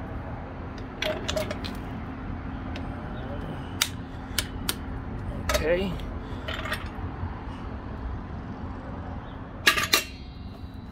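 Metal parts of a floor jack click and clank as they are handled.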